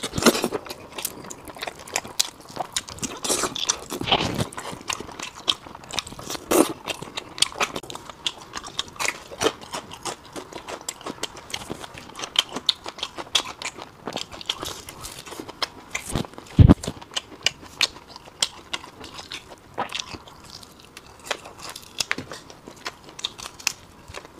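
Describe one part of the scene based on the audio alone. A man slurps and sucks saucy meat off a bone close to a clip-on microphone.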